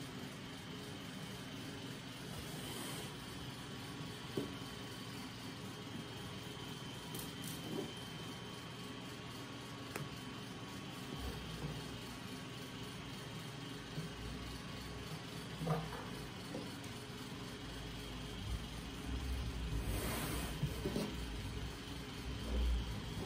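Fabric rustles softly as hands fold and smooth it.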